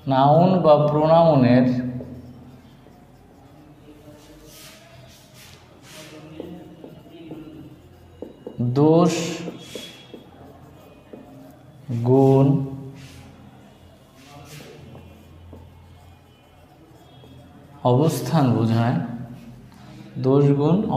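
A man speaks in short bursts, close by.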